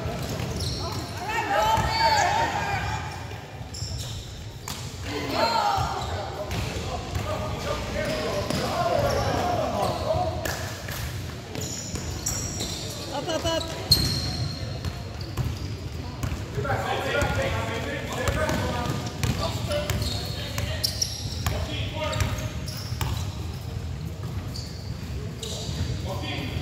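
Young players shout and call out to each other across the gym.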